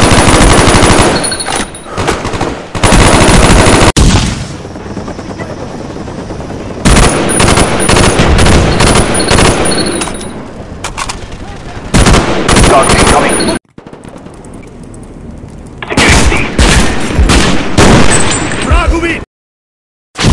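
Rifle shots crackle in a video game.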